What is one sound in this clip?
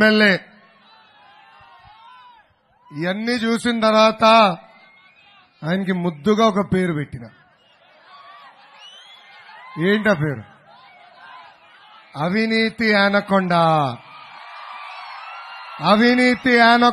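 A large crowd cheers and roars between the shouts.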